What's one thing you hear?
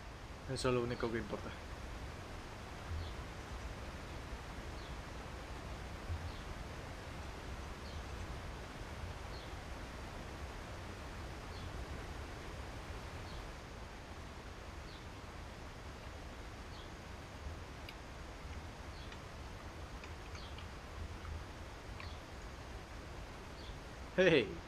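Small waves lap gently against a shore.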